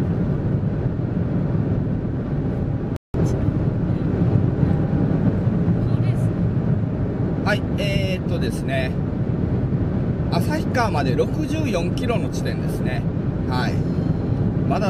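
A car drives steadily along a highway with a low road rumble inside the cabin.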